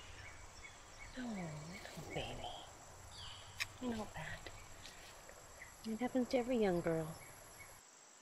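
A woman speaks gently and warmly, close by.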